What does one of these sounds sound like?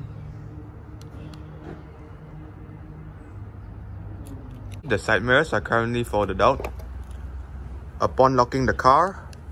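A car key fob button clicks.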